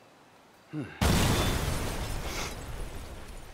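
A car splashes heavily into water.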